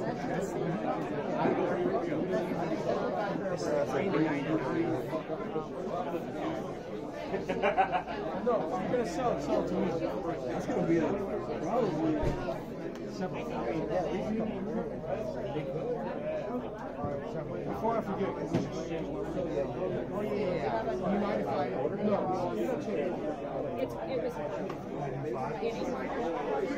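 Several people chatter nearby in a busy room, their voices overlapping.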